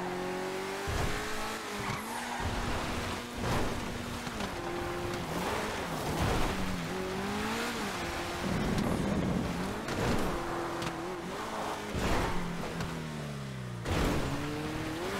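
A car's wheels thump and bang over bumps and rocks.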